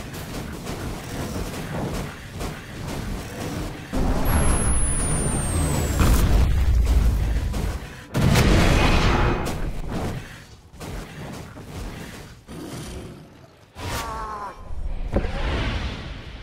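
Game spells crackle and blast during a fight.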